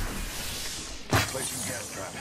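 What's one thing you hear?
A wooden door bangs open.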